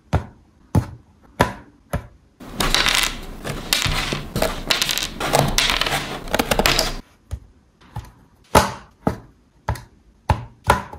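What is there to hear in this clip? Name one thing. Fingers tap sharply on a thin wooden board.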